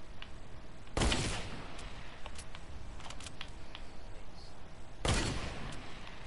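Gunshots bang out loudly.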